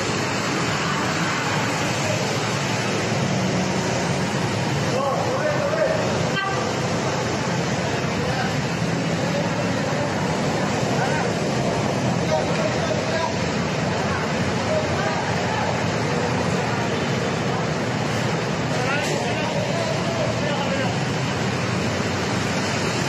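Traffic rumbles steadily.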